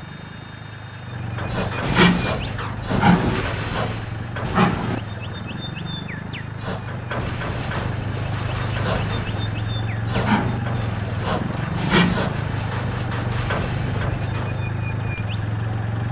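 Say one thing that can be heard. A steam locomotive chugs and puffs steadily.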